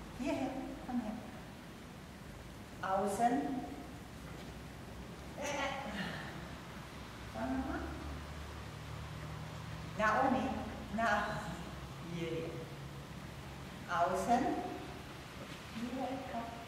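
A woman calls out short, lively commands to a dog in an echoing hall.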